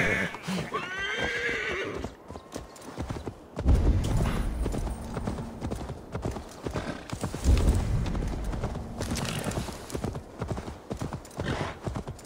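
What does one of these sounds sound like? A horse's hooves pound on grass at a gallop.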